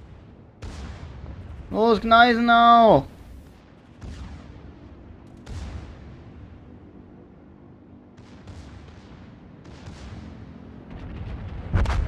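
Naval guns fire in heavy booms.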